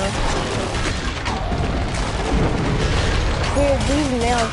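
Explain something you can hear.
A rifle fires rapid bursts.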